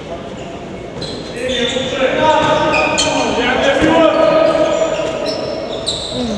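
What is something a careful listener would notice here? Sneakers squeak on a hard court floor.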